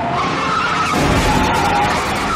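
Two cars crash together with a loud bang.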